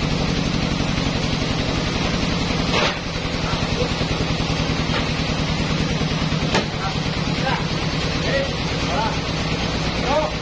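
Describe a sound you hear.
Sawmill machinery hums.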